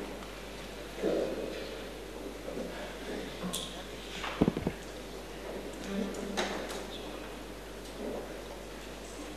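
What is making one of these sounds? A crowd of men murmurs and shuffles quietly in a large echoing hall.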